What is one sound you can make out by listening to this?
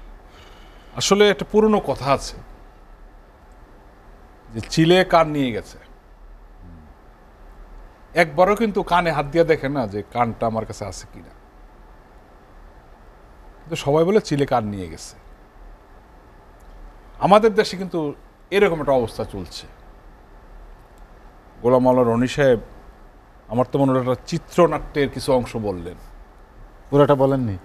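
A middle-aged man speaks calmly into a microphone in short bursts with pauses.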